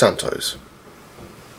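A boy speaks briefly close to a microphone.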